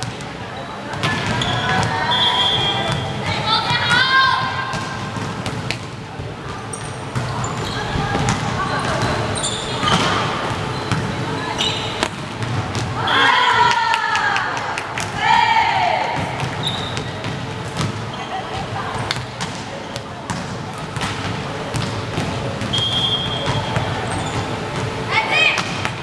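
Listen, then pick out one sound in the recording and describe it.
Young women shout and call out to each other.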